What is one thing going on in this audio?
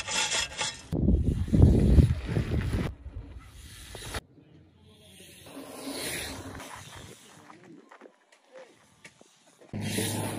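Bicycle tyres roll and thud over a dirt track.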